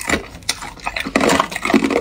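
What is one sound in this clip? Ice cubes clink against each other in a plastic tub.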